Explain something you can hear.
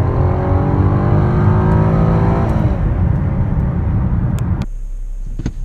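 A car engine roars as it accelerates hard, its pitch rising.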